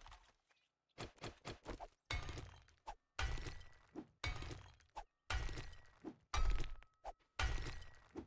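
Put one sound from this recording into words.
A pickaxe strikes rock again and again.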